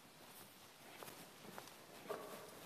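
Footsteps tap on a hard floor in a quiet, echoing room.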